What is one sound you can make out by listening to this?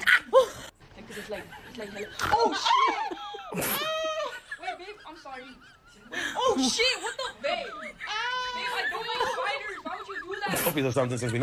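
A woman shrieks and laughs with excitement close by.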